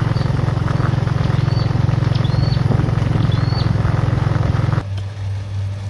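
Bicycle tyres roll over a gravel road.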